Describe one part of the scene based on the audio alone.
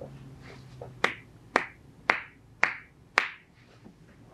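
Hands slap sharply on a clothed leg several times in quick succession.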